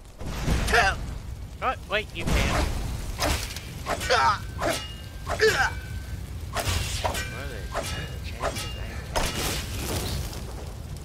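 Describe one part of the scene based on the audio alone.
Flames crackle and roar close by.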